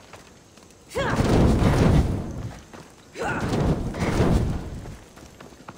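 Flames whoosh and roar as fire catches.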